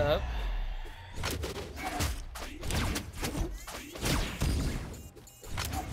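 Punchy hits and whooshing attack sounds from a video game fight come in quick bursts.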